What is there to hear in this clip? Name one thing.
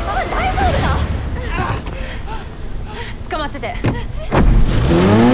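A young woman calls out loudly.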